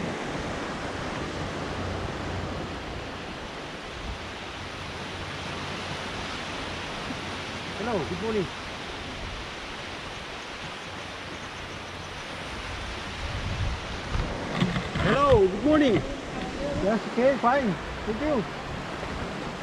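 Wind blows across the beach.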